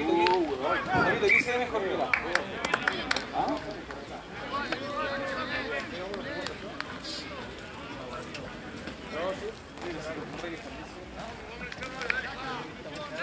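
Spectators shout and cheer outdoors from across a field.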